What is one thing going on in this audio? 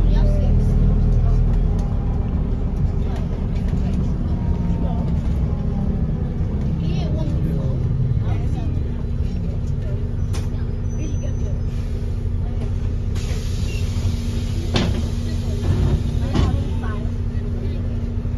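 A bus rattles and clatters over the road.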